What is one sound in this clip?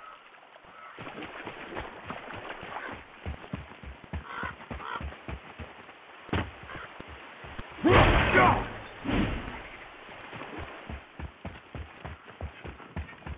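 Heavy footsteps run quickly over dirt.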